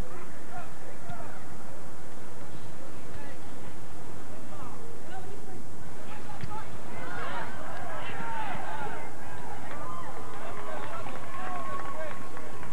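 A small crowd of young spectators shouts and cheers nearby outdoors, growing louder partway through.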